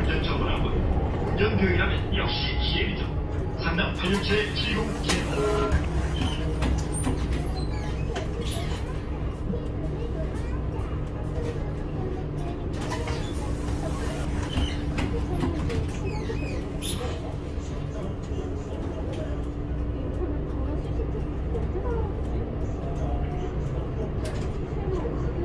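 A bus body rattles and creaks as it drives.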